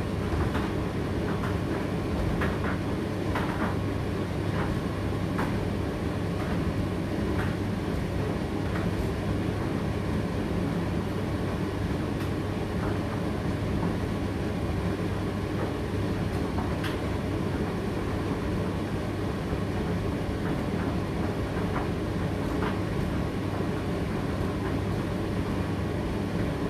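A condenser tumble dryer hums and whirs as it runs a drying cycle.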